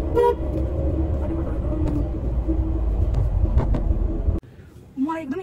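A car engine rumbles and the car hums along the road.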